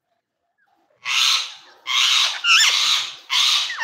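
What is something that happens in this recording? A rose-ringed parakeet screeches harshly.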